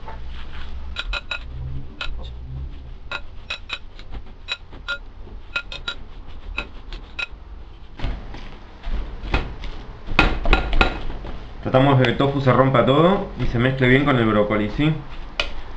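A fork clinks and scrapes against a ceramic bowl while mixing food.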